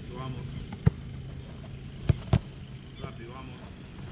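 A goalkeeper dives and lands on the grass with a thump.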